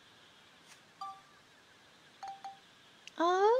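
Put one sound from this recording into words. Short electronic menu beeps sound now and then.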